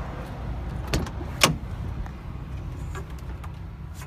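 A truck door unlatches and swings open.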